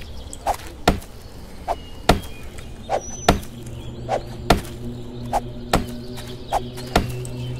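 A stone axe chops repeatedly into a tree trunk with sharp knocks.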